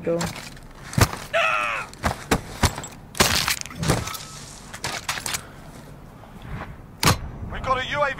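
Rifle shots crack sharply, one at a time.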